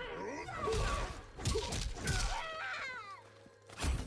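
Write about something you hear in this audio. A body slams to the ground with a heavy thud.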